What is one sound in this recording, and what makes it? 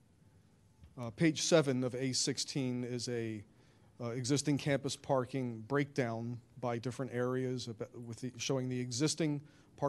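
A man speaks into a microphone, heard through a loudspeaker.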